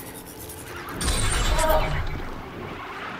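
A mechanical beast lets out a loud electronic whine.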